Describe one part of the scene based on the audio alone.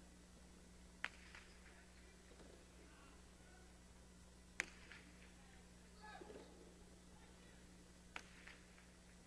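A hard ball cracks sharply against a wall and echoes through a large hall.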